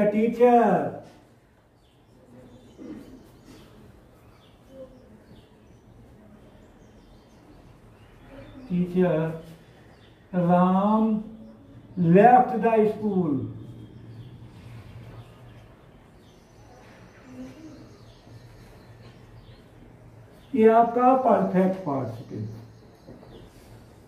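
An elderly man speaks calmly in short bursts, close by.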